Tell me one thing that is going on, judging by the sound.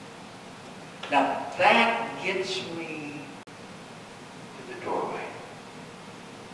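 A middle-aged man speaks slowly and earnestly into a microphone in a large room.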